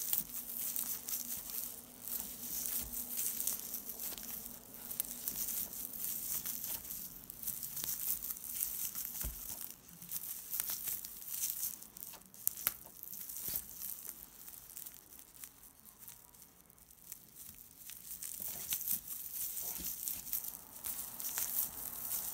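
Stiff paper yarn rustles and crinkles as it is crocheted close by.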